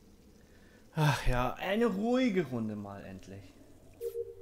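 Water gurgles and glugs as it pours from one jug into another.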